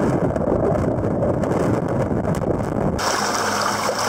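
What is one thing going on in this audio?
Water churns, heard muffled from underwater.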